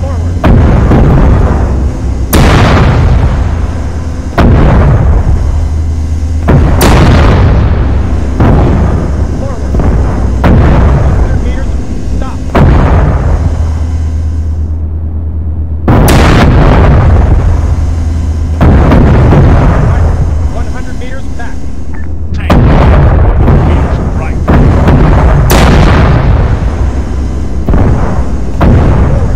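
A heavy engine hums low and steadily.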